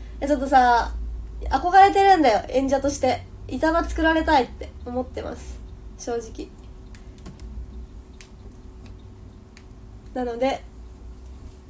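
A young woman talks brightly and close to the microphone.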